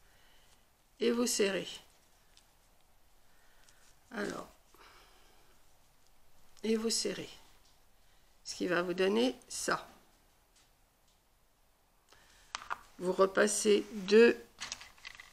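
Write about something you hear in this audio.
An elderly woman speaks calmly close by.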